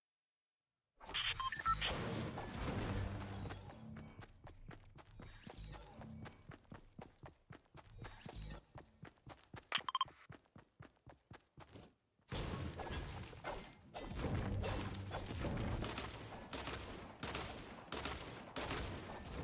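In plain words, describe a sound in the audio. Footsteps patter quickly over ground.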